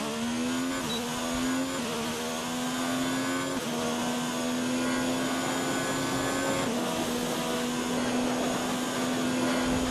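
A racing car engine roars at high revs, dropping in pitch briefly with each upshift.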